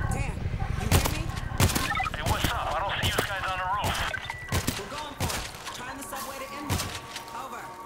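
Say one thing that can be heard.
Gunshots bang in quick bursts.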